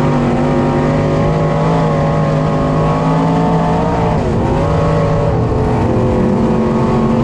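A race car engine roars loudly up close, its pitch dipping and rising as it shifts through a turn.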